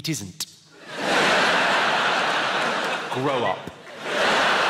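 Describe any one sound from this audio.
A large audience laughs and applauds loudly.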